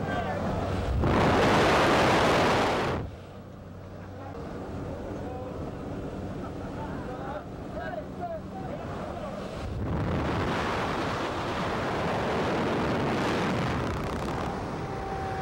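Wind roars loudly past an open aircraft door.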